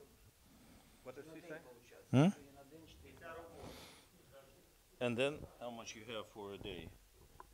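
An elderly man speaks calmly and clearly nearby.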